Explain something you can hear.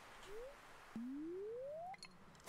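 A video game plays a quick rising tone as a fishing line is cast.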